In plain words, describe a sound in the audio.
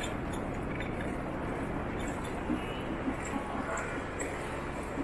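City traffic hums steadily nearby.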